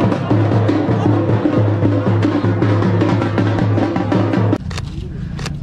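A crowd chatters loudly outdoors.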